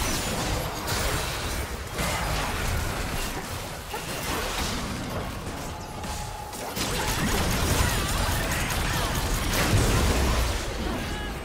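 Magic blasts and weapon hits crackle and whoosh in a fast game battle.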